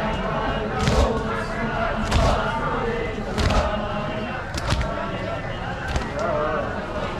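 Men in a crowd beat their chests with loud, even slaps.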